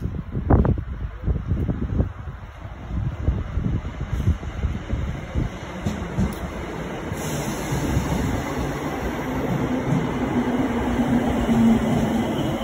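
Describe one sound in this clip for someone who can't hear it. An electric train approaches and rolls past close by with a rising rumble and whine.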